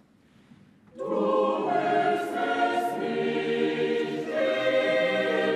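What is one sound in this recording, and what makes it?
A choir of boys sings loudly.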